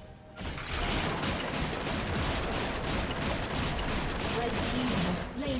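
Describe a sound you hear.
Game spell effects crackle, whoosh and clash in a busy fight.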